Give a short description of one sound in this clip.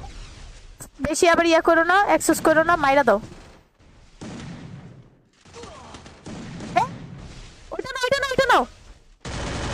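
A young woman talks with animation close to a headset microphone.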